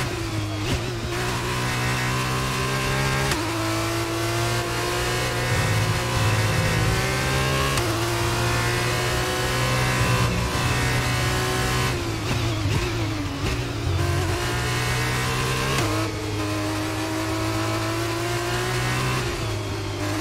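A racing car engine screams at high revs, rising through the gears and dropping sharply when braking.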